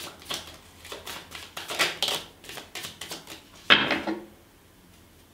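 Playing cards riffle and slap together as they are shuffled close by.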